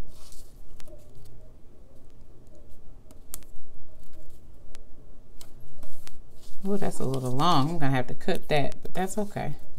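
Paper crinkles and taps softly under fingers.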